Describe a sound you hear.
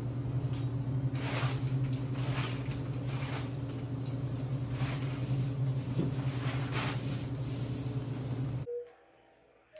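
A paint roller rolls against a wall.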